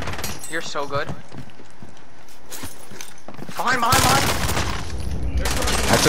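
Gunfire rattles in short bursts nearby.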